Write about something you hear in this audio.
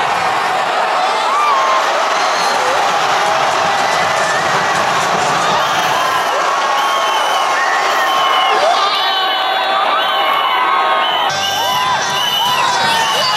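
A large stadium crowd cheers and shouts loudly all around.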